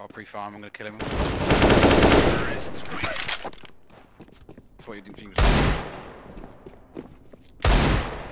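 Gunshots ring out in quick bursts with a short echo.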